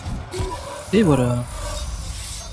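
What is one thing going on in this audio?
A monstrous creature lets out a deep, drawn-out roar.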